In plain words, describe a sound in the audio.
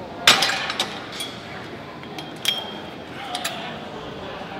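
Weight plates clank on a gym machine.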